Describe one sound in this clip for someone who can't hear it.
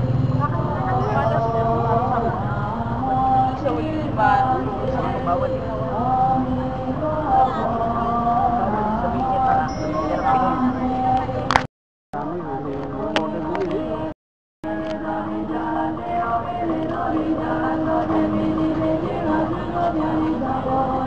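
A crowd of people talks outdoors at a distance.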